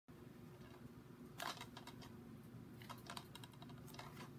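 A plastic disc case rustles and knocks in a hand.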